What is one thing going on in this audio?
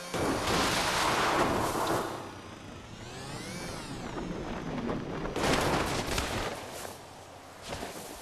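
A motorbike engine revs loudly.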